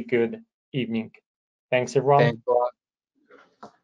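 A man speaks calmly through a microphone, as on an online call.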